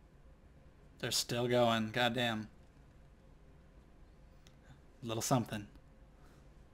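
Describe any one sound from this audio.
A young man speaks calmly and briefly, close to a microphone.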